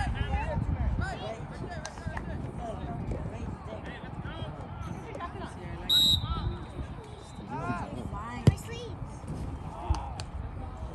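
Players and spectators shout and call out across an open field.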